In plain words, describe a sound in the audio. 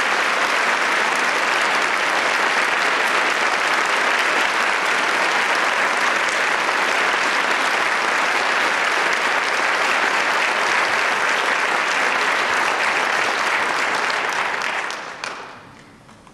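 An audience applauds loudly in a large hall.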